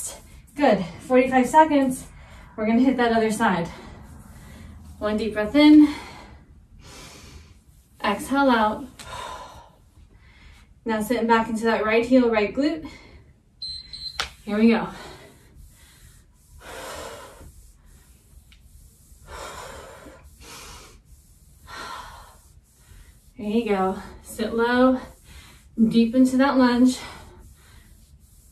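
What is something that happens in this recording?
A woman talks calmly and clearly, close by.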